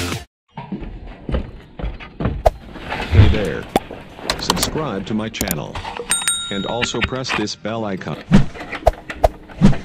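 Keys jingle and click into a motorcycle's ignition.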